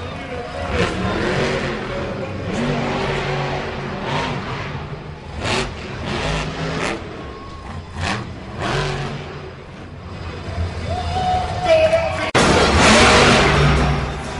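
A monster truck engine roars and revs loudly.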